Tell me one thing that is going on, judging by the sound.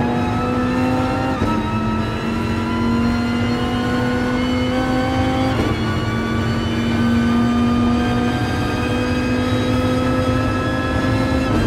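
A racing car engine roars loudly, rising in pitch through each gear and dropping sharply at each gear change.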